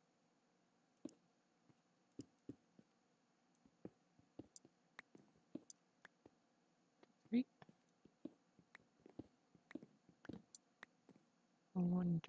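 Stone blocks knock softly as they are set down.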